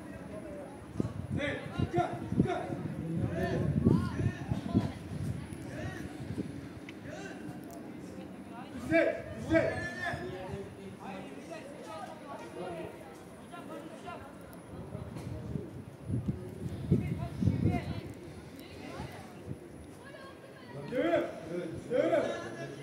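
Young men shout to each other across an open field, heard from a distance.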